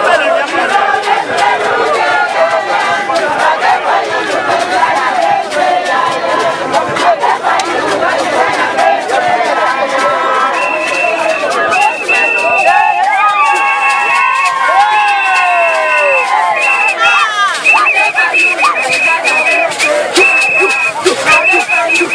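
A large crowd sings and chants loudly outdoors.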